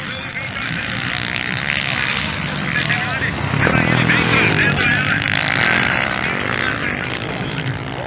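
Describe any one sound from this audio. Dirt bike engines rev and whine nearby.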